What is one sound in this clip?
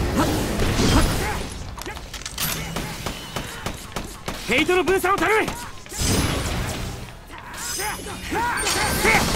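Blades strike with sharp metallic hits.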